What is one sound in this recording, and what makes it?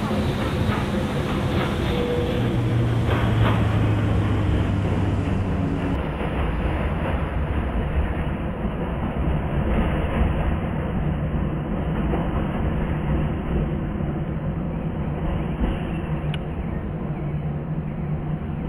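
An electric multiple-unit train hums as it runs along the track.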